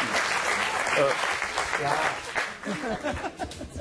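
A man laughs close by.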